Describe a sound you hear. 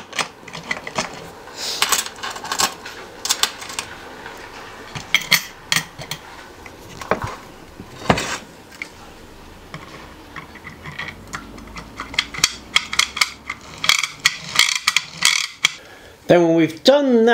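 Small plastic parts click and clatter on a table.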